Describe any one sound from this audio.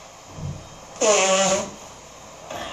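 A young girl blows her nose into a tissue.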